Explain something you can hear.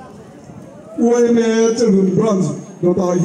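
A group of women sing a chant together, loud and close.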